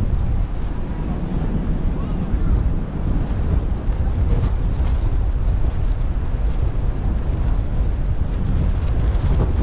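Strong wind buffets outdoors with a low rumble.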